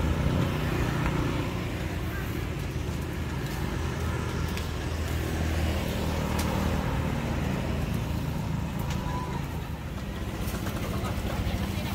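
Motorbikes rumble past along a road.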